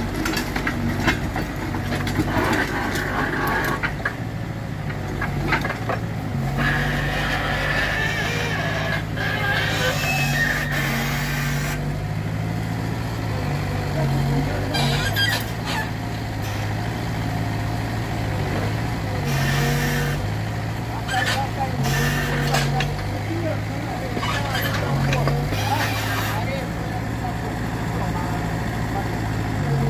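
An excavator's hydraulics whine as its arm swings.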